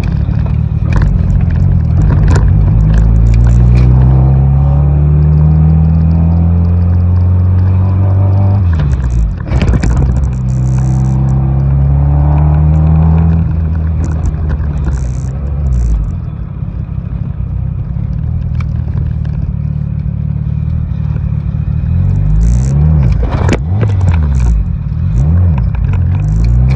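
A car engine hums and rises in pitch as it speeds up, again and again.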